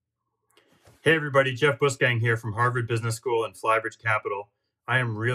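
A middle-aged man speaks calmly to the listener over an online call.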